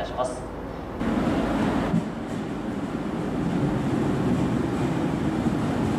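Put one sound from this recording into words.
A train rolls slowly in along the tracks with a low rumble.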